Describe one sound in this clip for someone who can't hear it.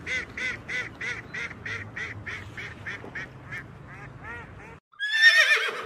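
A duck quacks in a quick, even series.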